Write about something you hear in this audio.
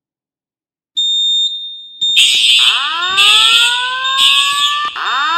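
A fire alarm blares loudly with rising tones.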